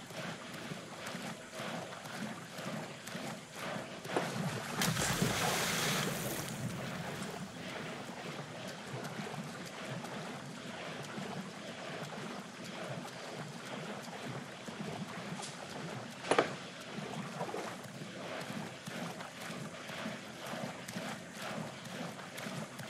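Water splashes as someone wades through shallow water.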